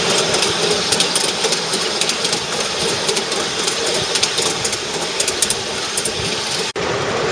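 A horse's hooves clop steadily on a paved road.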